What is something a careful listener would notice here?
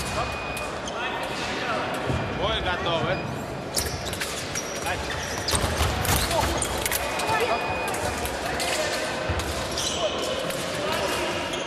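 Sports shoes squeak sharply on a hard floor in a large echoing hall.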